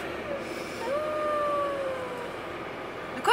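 A young woman hums a long falling note close by.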